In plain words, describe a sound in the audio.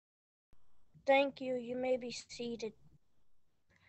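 A young girl speaks calmly through an online call.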